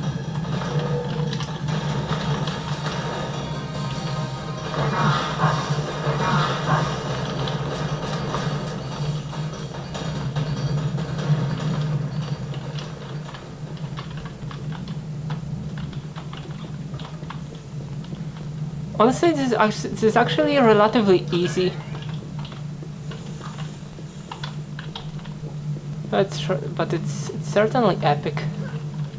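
Video game gunfire and effects play through small desktop speakers.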